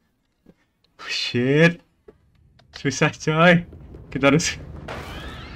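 A man laughs through a close microphone.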